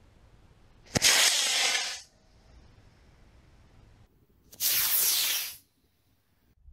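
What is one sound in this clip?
A model rocket motor roars briefly as the rocket launches.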